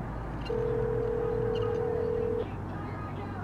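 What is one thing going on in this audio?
A telephone dial tone hums steadily through a handset, then cuts off.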